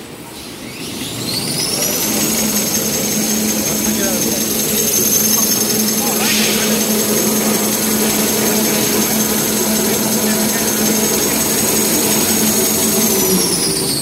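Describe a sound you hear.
A machine whines loudly at a high, steady pitch after winding up.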